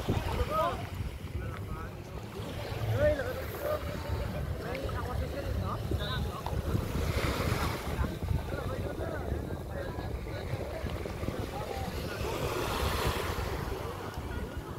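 Wind blusters outdoors.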